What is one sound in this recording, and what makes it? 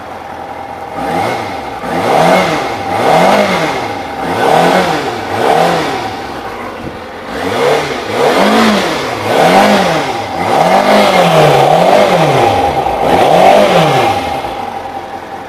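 A motorcycle engine revs up and down again and again, loud and close.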